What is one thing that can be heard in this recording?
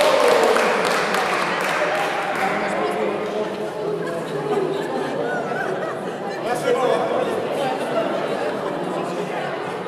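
A large choir of men and women sings together in a big echoing hall.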